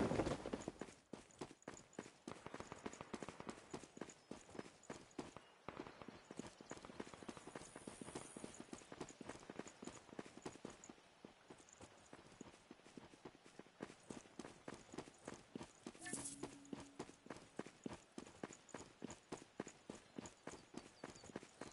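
Footsteps thud quickly on grass as a figure runs.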